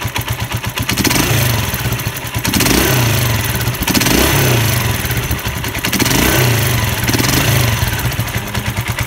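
A motorcycle engine revs up in short bursts and settles back.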